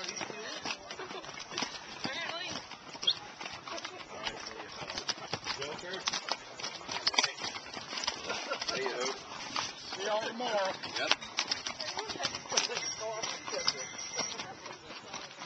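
Hooves clop and scrape on a rocky trail.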